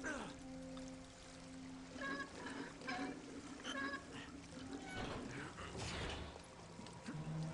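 A heavy metal wheel creaks and clanks as it is turned.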